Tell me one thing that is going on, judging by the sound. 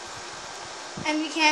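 A young boy speaks briefly nearby.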